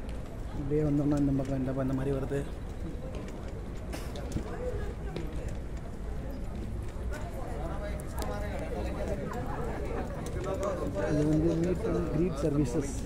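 A young man talks calmly close to the microphone.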